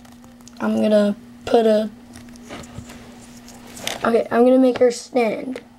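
A plastic wrapper crinkles as hands tear it open.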